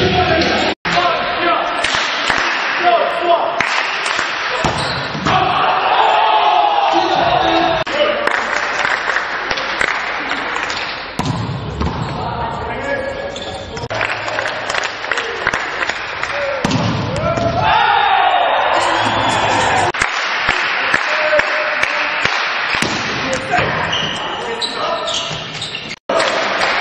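A volleyball is smacked hard in a large echoing hall.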